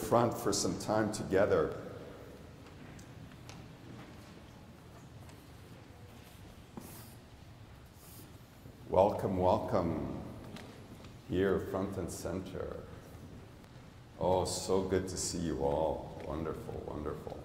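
A man speaks through a microphone in a large echoing hall, in short phrases with pauses.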